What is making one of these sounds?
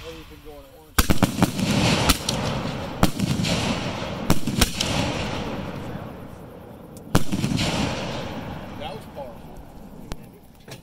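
Fireworks crackle and fizzle overhead.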